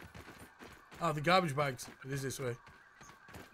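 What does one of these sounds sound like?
A man speaks animatedly into a close microphone.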